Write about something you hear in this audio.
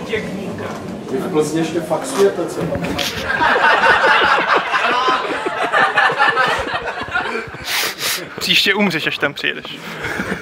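Men laugh loudly on a couch.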